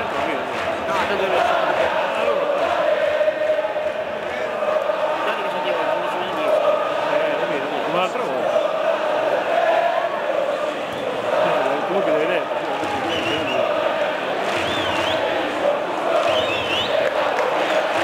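A large stadium crowd chants and sings loudly in unison.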